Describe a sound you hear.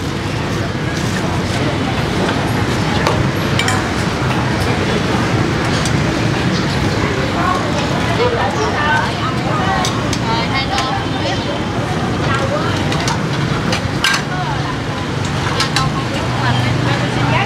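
A low steady rumble of a busy outdoor street fills the air.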